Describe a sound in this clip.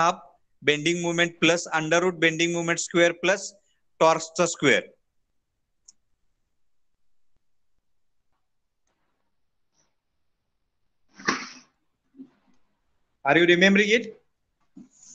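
A man lectures calmly through a microphone, pausing between phrases.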